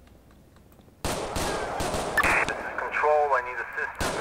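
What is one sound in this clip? A pistol fires loud gunshots.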